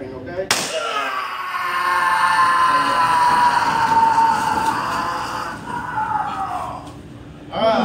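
A man yells out in a long, strained cry.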